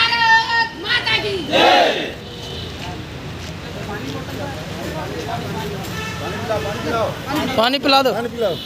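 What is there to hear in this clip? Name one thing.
A crowd murmurs and talks nearby.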